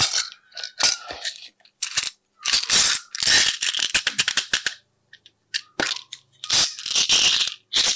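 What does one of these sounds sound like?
Plastic toys click and rattle against glass.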